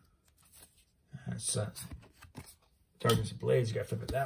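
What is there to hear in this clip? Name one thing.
Trading cards slide against each other as they are flipped.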